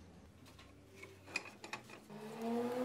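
A metal block clinks against a vise as it is lifted out.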